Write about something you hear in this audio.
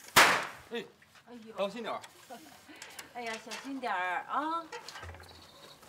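An elderly woman calls out anxiously nearby.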